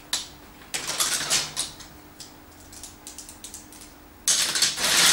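Plastic toy bricks clatter and click as they are handled.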